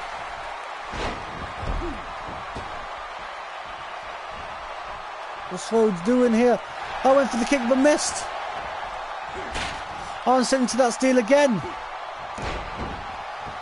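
Heavy bodies slam onto a wrestling mat with dull thuds.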